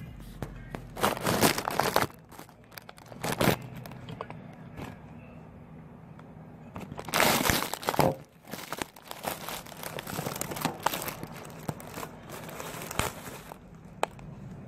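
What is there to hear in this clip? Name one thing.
A phone is fumbled and knocked about close up.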